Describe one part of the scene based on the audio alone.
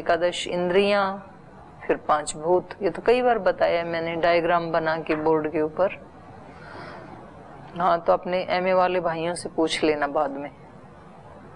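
A middle-aged woman speaks calmly and steadily, close to a microphone.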